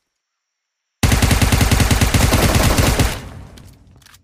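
A gun fires a loud, rapid burst of shots.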